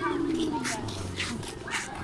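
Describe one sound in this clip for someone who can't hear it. Sandals tap on pavement as people walk past.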